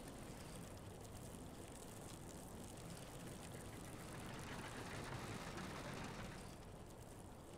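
Water pours in a thin stream and splashes into a trough.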